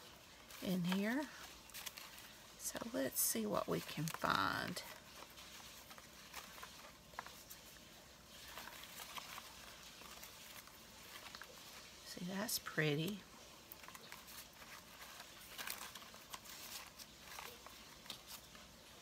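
Paper scraps rustle and crinkle close by.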